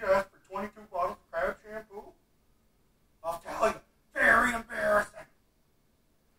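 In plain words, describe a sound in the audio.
A middle-aged man talks with animation, close to the microphone.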